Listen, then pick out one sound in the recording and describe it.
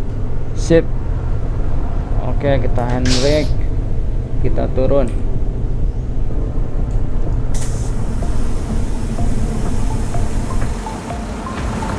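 A bus engine idles with a low hum.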